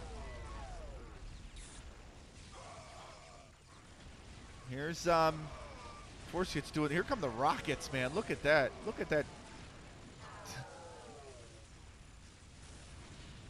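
Energy weapons fire in short zapping bursts.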